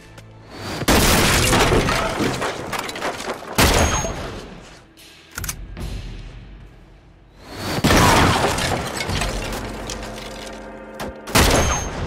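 A sniper rifle fires loud, sharp shots that boom and echo.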